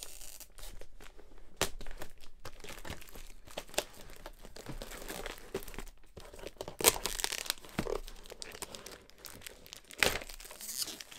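A plastic tray taps and clicks against a table.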